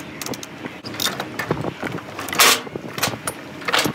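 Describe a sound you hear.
A metal chain rattles and clinks.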